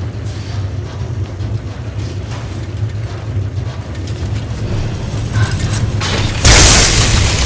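Magic energy crackles and hums softly.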